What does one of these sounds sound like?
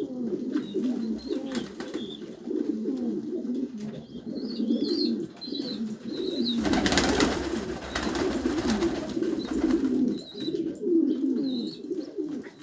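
Pigeons peck at grain on the ground with light taps.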